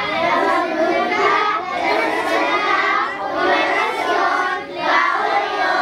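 A group of children recite together in unison, close by.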